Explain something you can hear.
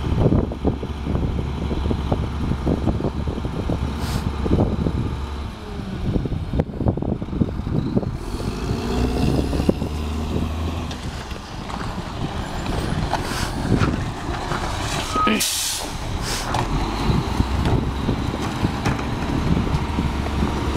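A garbage truck engine rumbles close by.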